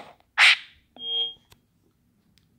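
A bright electronic chime rings out briefly.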